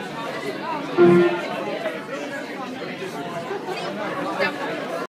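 Young men chatter and call out nearby in an echoing room.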